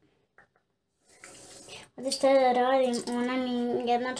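Water gurgles as a young girl rinses her mouth.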